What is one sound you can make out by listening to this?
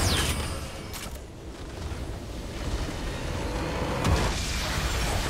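Game spell effects crackle and whoosh in a fight.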